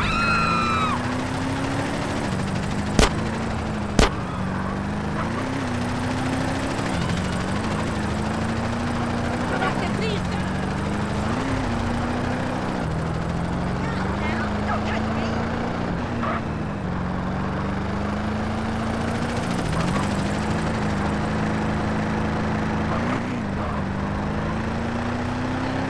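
A car engine hums steadily, rising and dropping in pitch as it shifts gears.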